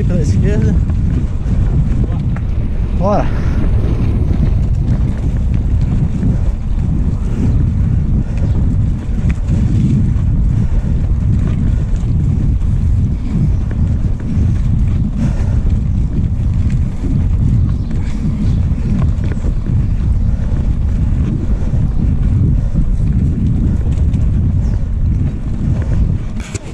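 Wind rumbles loudly across a microphone outdoors.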